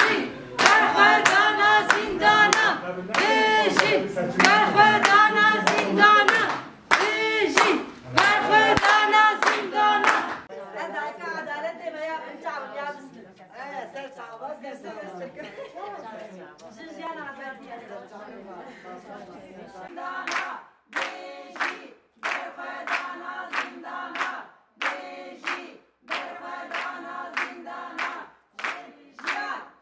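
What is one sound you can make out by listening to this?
Middle-aged women chant loudly together.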